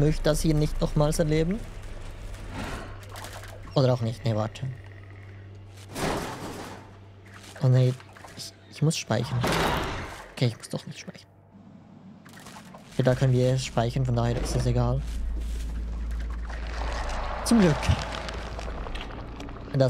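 A fleshy creature squelches as it crawls.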